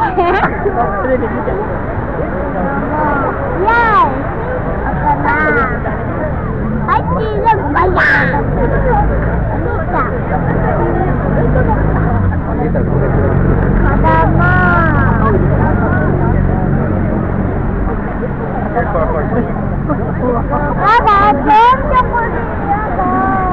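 Small waves lap gently against a shore.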